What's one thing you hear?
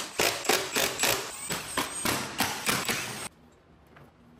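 An electric impact driver whirs and rattles in short bursts.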